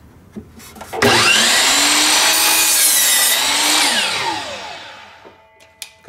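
A power saw whirs loudly, cuts through wood, then spins down.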